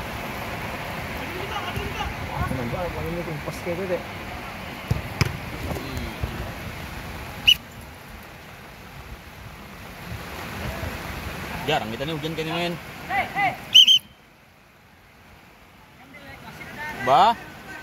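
Young men shout and call to each other outdoors.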